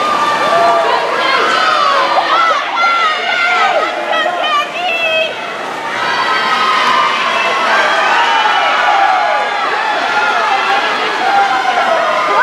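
A crowd cheers and shouts loudly in a large echoing hall.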